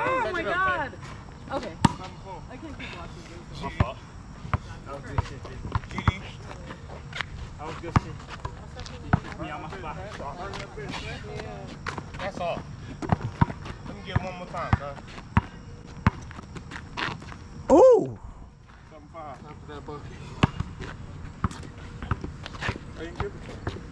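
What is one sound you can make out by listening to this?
A basketball bounces on concrete outdoors.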